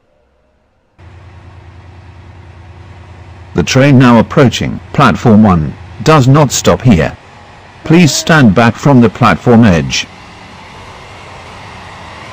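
A train's motor hums steadily and rises slightly as the train pulls away.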